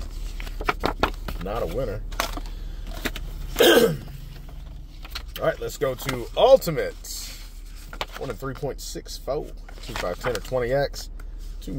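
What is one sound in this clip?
Paper tickets rustle and crinkle as they are handled.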